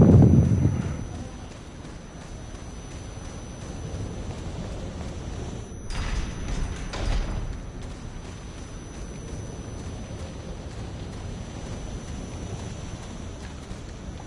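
Footsteps crunch on stone and gravel.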